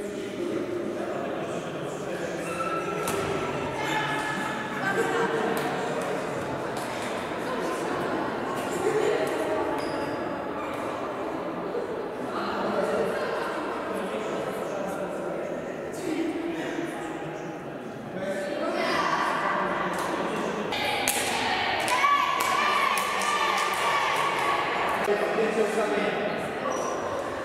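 Teenage girls chatter and call out in a large echoing hall.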